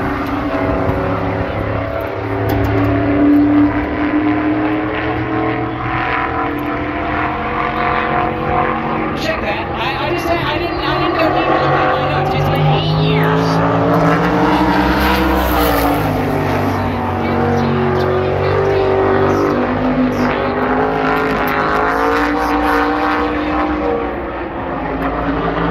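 Race car engines roar and whine as cars lap an oval track.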